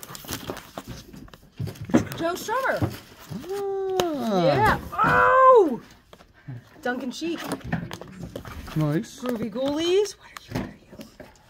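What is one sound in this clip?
Cardboard and record sleeves rustle as they are handled.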